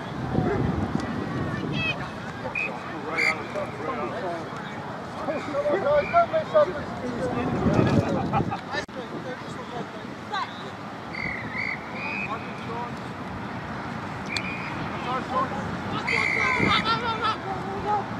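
Young players shout and call to each other outdoors across an open field.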